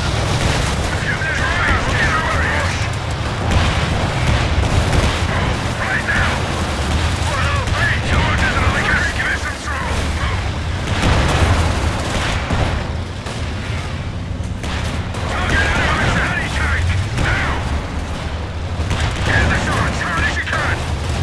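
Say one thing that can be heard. Explosions boom in a battle.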